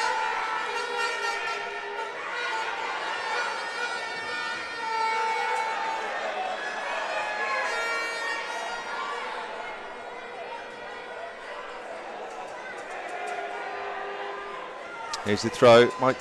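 A crowd of fans chants and sings in a large echoing hall.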